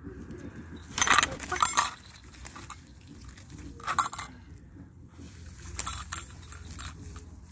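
Dry grass rustles and swishes as someone moves through it.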